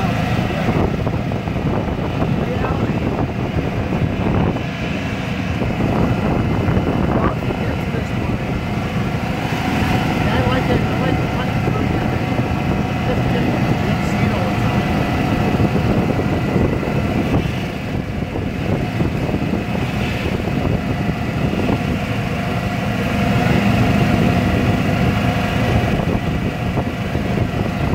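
Tyres roll on pavement.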